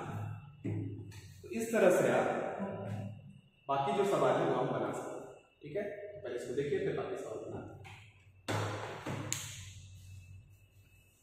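A young man speaks calmly, explaining as he teaches.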